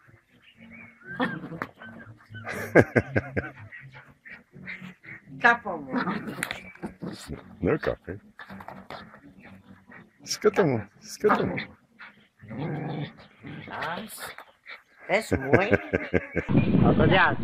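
A small dog barks and growls excitedly.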